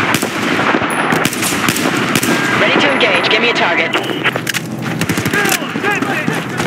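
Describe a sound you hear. Rifle shots crack in quick bursts nearby.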